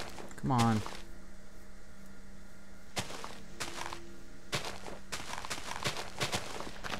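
Footsteps crunch softly on grass.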